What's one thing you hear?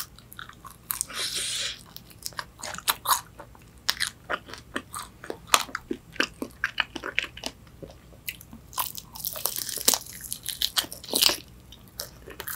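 A young woman slurps soup close to a microphone.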